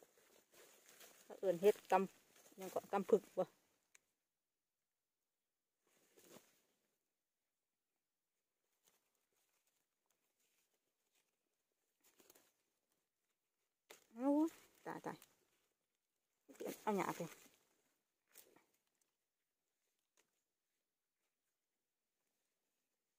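Hands pull mushrooms off a rotting log.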